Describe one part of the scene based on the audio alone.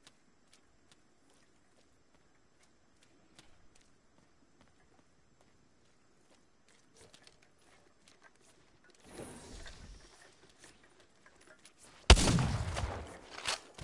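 Footsteps crunch on dirt at a steady walking pace.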